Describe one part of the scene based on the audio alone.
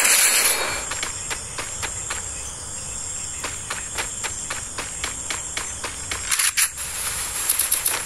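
Footsteps clank quickly on a metal roof.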